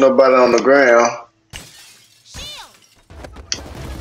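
Glass shatters sharply.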